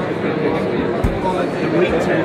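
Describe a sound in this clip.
A refrigerator door thuds shut.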